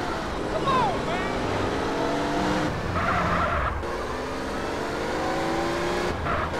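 A car engine revs steadily as it drives.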